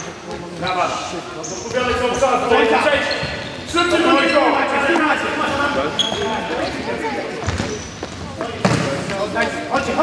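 A ball thuds as it is kicked on a hard floor.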